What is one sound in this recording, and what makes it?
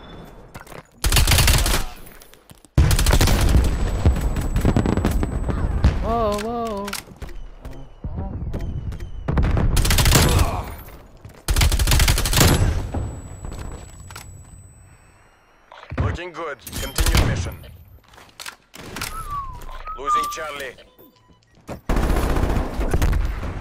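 Rapid gunfire bursts loudly and echoes.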